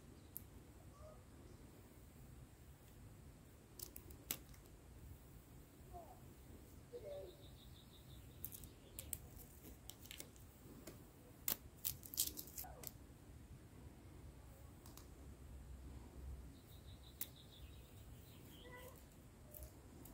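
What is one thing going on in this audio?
Plastic film crinkles and peels softly close by.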